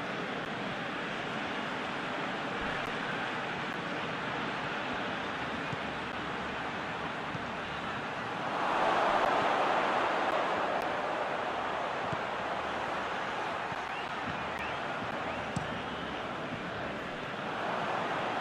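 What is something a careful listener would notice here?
A stadium crowd roars steadily, swelling loudly for a few seconds.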